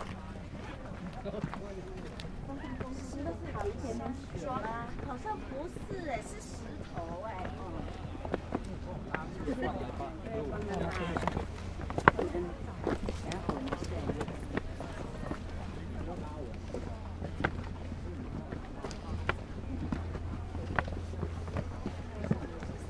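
Footsteps crunch and scrape on rocky gravel.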